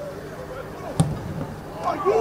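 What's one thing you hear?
A football is struck hard with a thump.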